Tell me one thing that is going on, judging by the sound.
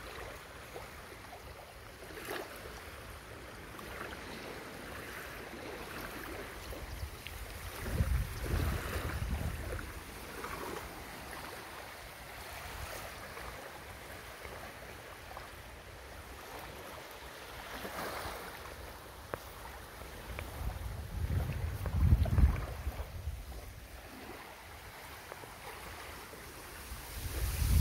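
Tall reeds rustle in the wind.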